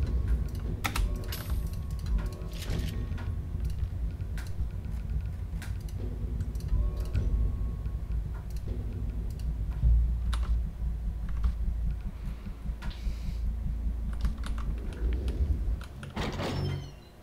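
Short interface clicks and blips sound as menu items are picked.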